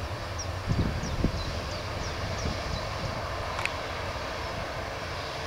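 A jet airliner's engines roar steadily nearby as it taxis.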